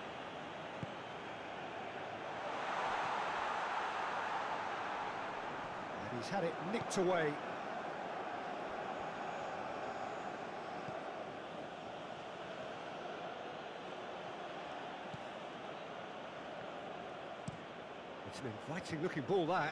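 A large crowd cheers and roars steadily in a big stadium.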